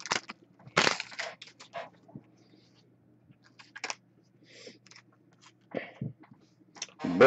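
Trading cards slide and shuffle against each other.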